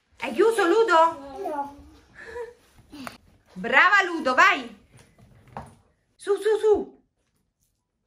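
A young girl speaks with animation, close by.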